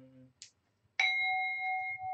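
A metal bowl is struck and rings out clearly.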